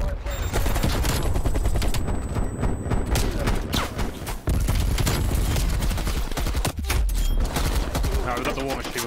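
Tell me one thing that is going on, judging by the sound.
Rapid gunfire rattles loudly.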